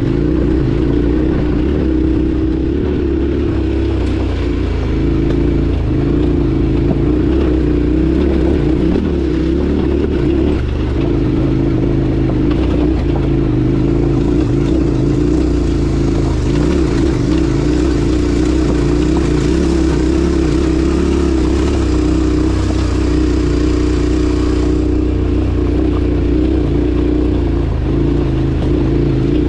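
Tyres crunch over loose gravel and rocks.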